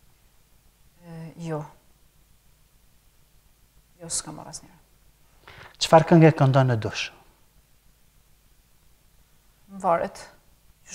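A young woman speaks calmly into a microphone, in short phrases.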